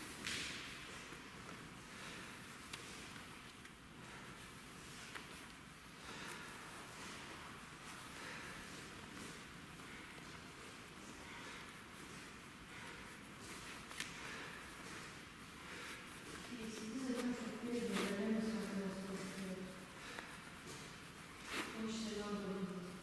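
A cloth belt rustles and swishes against fabric as it is wrapped and tied.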